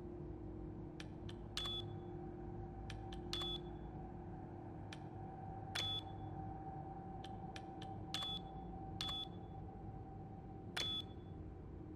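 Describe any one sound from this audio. Keypad buttons click sharply as a code is entered.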